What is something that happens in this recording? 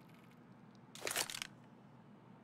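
A knife is swapped for a pistol with a short metallic rattle.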